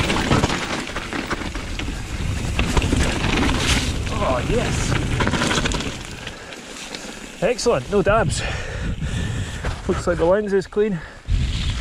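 Bike tyres crunch and rattle over a rough gravel trail.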